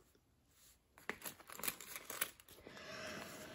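Coins clink inside a plastic pouch.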